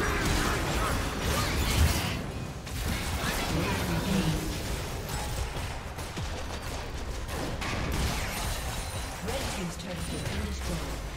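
Magic spell effects whoosh and crackle in a video game fight.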